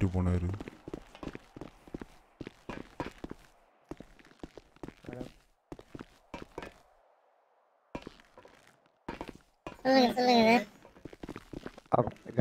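Footsteps tap quickly on a hard floor and metal stairs.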